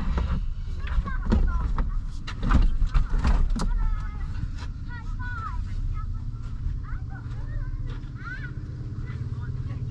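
Wind rumbles against an open car window outdoors.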